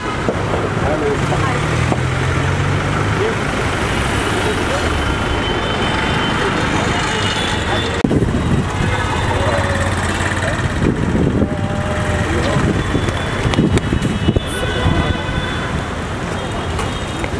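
A busy street hums with traffic noise outdoors.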